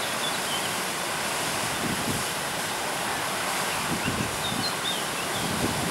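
Rushing water roars steadily as it tumbles down over rocks close by.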